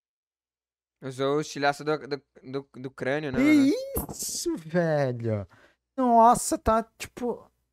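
A young man talks with animation through a headset microphone, as on an online call.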